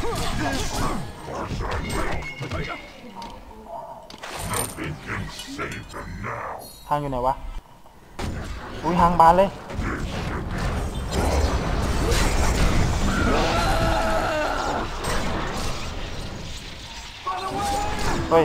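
Spell effects and weapon hits crackle and clash in a fantasy battle game.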